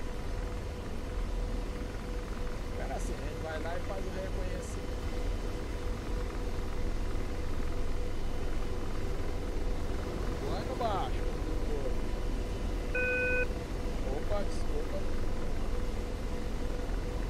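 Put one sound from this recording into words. An aircraft engine hums and roars steadily.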